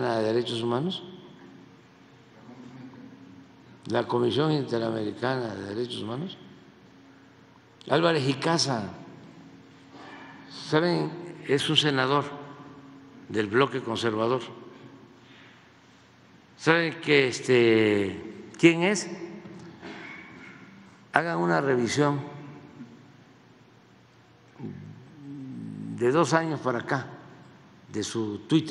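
An elderly man speaks slowly into a microphone, with pauses, in a large echoing hall.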